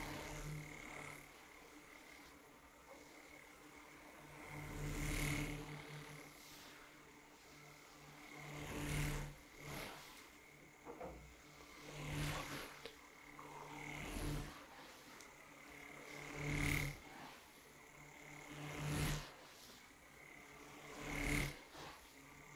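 Brushes sweep and rustle close to a microphone.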